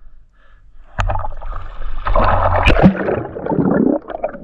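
Water splashes and sloshes as a diver breaks the surface and dives back under.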